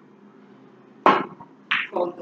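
Snooker balls knock against each other.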